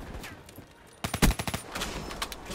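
A rifle fires shots.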